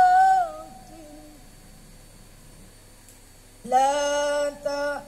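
A boy chants melodically into a microphone, his voice ringing in a large echoing hall.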